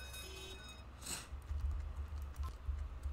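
A coin chimes as it is collected.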